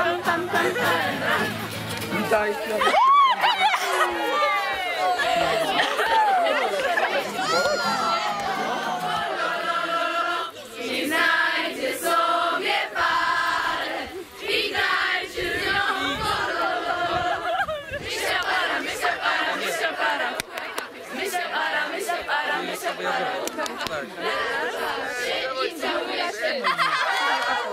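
A crowd of children and teenagers chatter and shout excitedly outdoors.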